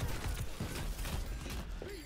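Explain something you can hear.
Video game guns fire in loud bursts.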